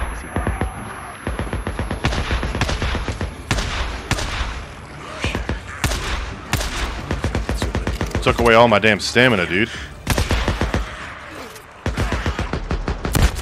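Pistol shots crack rapidly and repeatedly.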